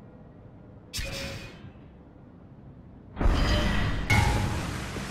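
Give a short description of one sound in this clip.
Menu clicks tick sharply.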